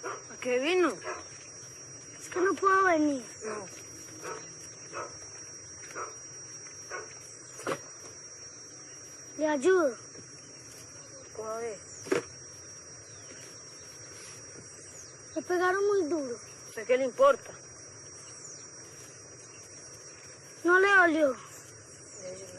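A boy speaks calmly outdoors.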